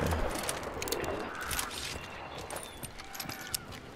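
A rifle's metal parts click and rattle as it is handled.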